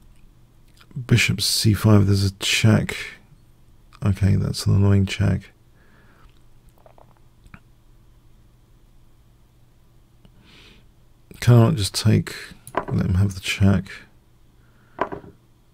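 A middle-aged man talks with animation, close to a microphone.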